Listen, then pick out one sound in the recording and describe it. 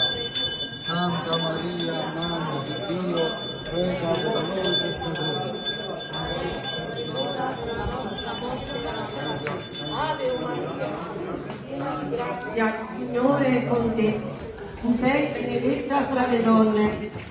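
A crowd of men and women sings a slow hymn nearby.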